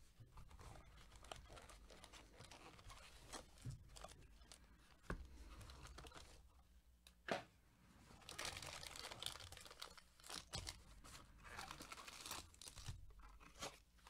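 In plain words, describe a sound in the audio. Cardboard and plastic wrapping rustle as gloved hands handle a box.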